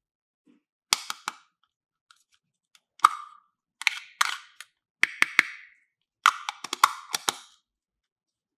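Plastic lids snap on and off.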